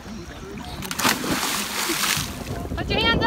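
A boy splashes into water.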